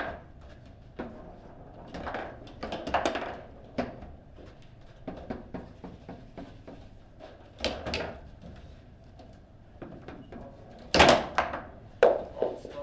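Metal rods of a foosball table rattle and thud as players spin them.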